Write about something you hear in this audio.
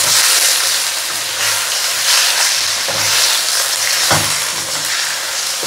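Chicken pieces sizzle and fry in a hot pan.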